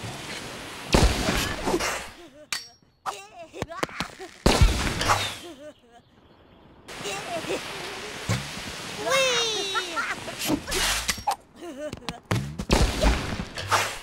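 Short blasts and whooshing bursts go off in quick succession.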